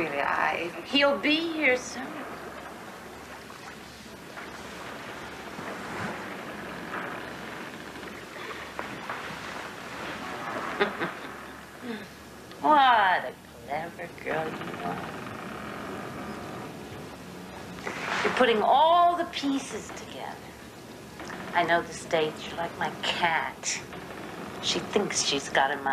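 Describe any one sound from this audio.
An older woman talks calmly.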